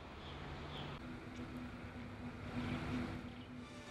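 Traffic rumbles along a nearby street.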